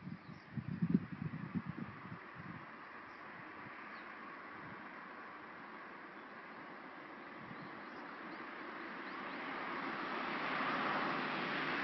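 Wind blows outdoors and rustles tree leaves.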